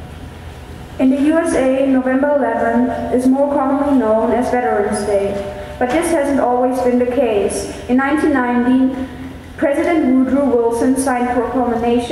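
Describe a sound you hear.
A choir of young voices sings in a large echoing hall.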